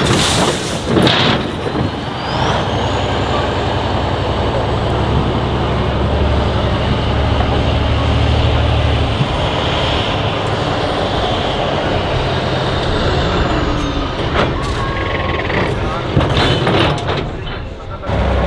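Big tyres crunch and grind over dirt.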